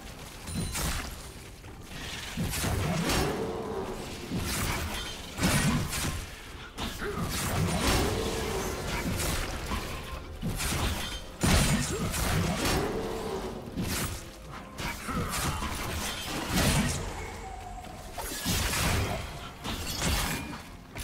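Sharp hits thud repeatedly during the fight.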